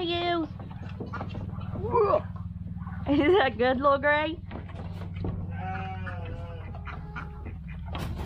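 Goats bleat loudly nearby.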